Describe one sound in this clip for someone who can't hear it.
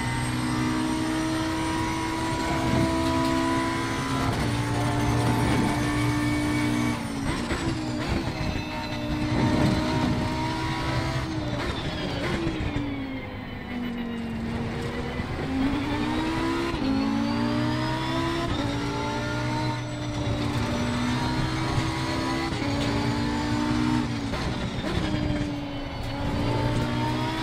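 A racing car engine roars loudly, rising and falling in pitch as it shifts gears.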